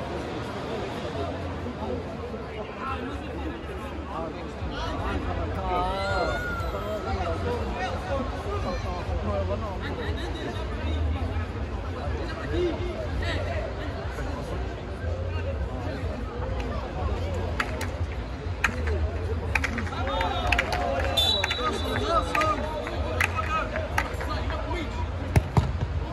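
Players shout to each other across the court.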